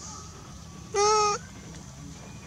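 A newborn baby macaque gives a short high squeal.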